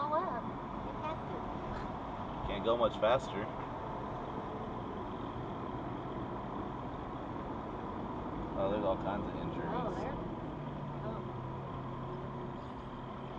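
A car drives steadily along a highway, its road noise and engine rumbling inside the cabin.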